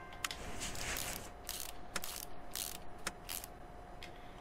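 A power wrench whirs in short bursts, loosening bolts.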